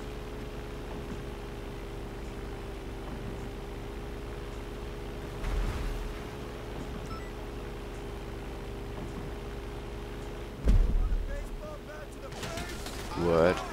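A small propeller plane's engine idles with a steady hum.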